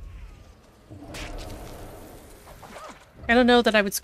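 A magic spell bursts with a shimmering whoosh.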